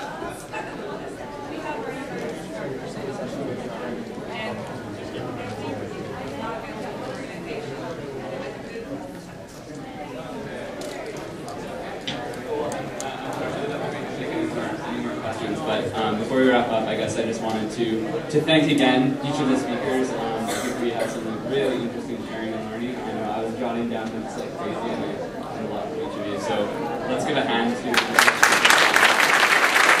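A man speaks through a microphone in a large echoing hall.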